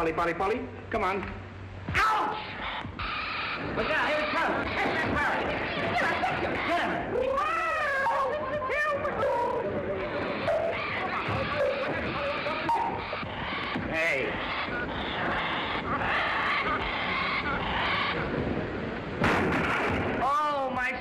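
A crowd of men and women murmurs and shouts in an echoing hall.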